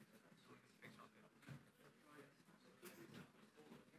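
Objects clack softly on a table.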